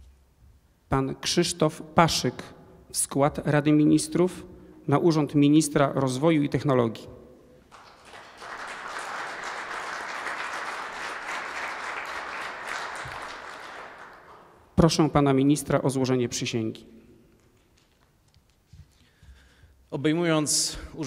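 A man speaks formally into a microphone in a large echoing hall.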